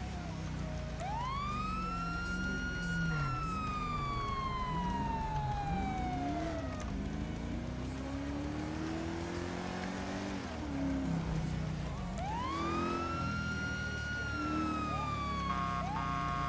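A police siren wails, rising and then slowly falling.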